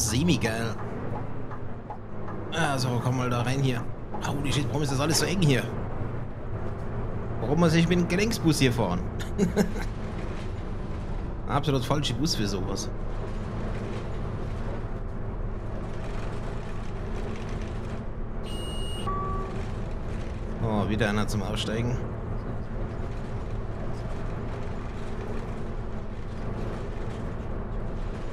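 A bus engine hums steadily.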